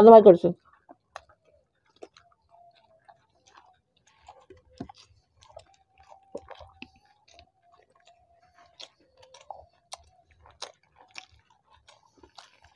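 A man and a woman chew and smack their lips softly while eating.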